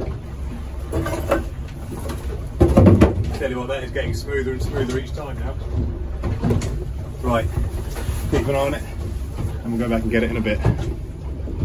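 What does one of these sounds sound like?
A man talks nearby in short bursts.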